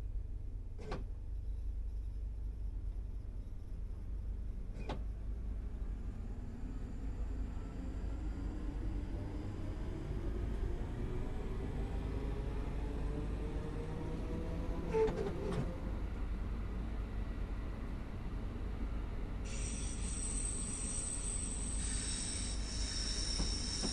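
Train wheels rumble on the rails.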